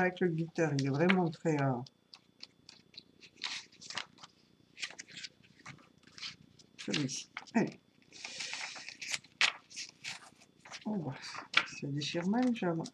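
Paper rustles and crinkles as it is folded and handled.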